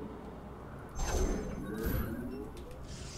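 Electronic game sound effects burst and whoosh.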